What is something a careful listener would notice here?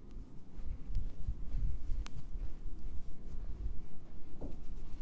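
A hand pats and kneads skin with soft low thumps.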